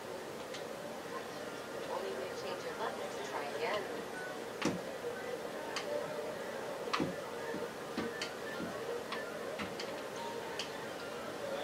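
Controller buttons click sharply now and then.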